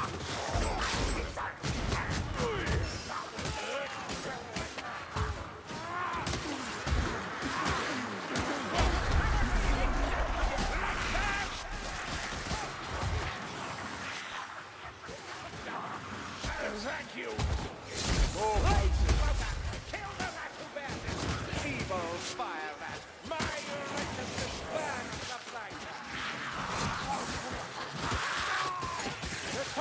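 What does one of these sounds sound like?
Blades hack and slash into flesh in quick, heavy blows.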